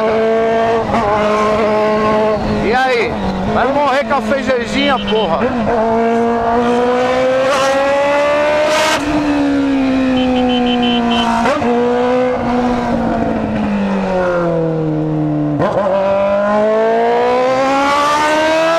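A motorcycle engine drones up close, rising and falling in pitch as it shifts gears.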